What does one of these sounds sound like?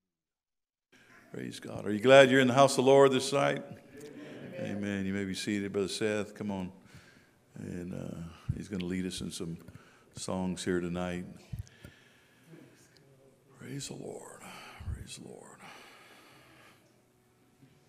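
A middle-aged man speaks with feeling through a microphone in an echoing hall.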